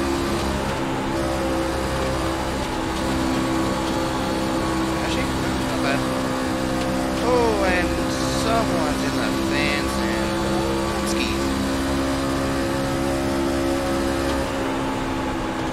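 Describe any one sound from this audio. A race car engine drones steadily at high revs.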